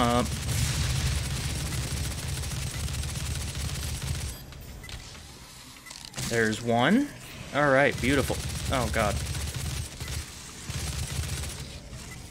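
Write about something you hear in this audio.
A heavy gun fires rapid shots.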